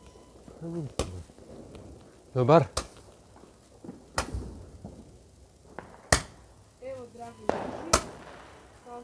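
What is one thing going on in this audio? Firecrackers bang loudly, one after another, echoing off nearby walls.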